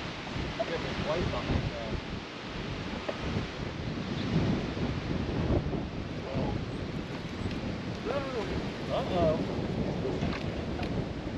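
A man talks casually nearby, outdoors in wind.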